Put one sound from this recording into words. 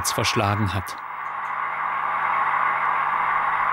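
A model locomotive's electric motor hums steadily and slowly grows louder.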